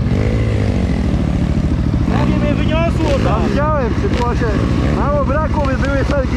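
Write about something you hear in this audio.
Quad bike engines idle and rev nearby.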